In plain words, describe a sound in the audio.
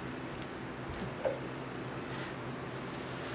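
Dishes knock and clink on a countertop.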